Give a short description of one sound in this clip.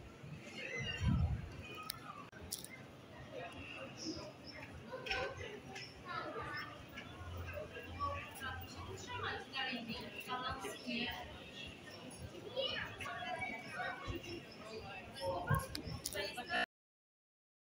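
People chatter nearby outdoors.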